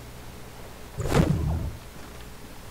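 A soft thud lands on the ground.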